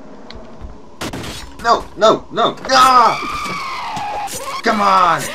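A young boy screams and shouts loudly into a close microphone.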